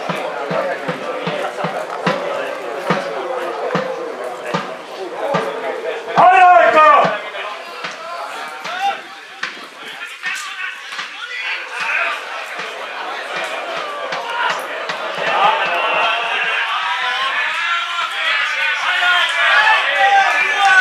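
Young men shout and call out across an open field outdoors.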